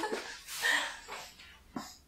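A young woman laughs.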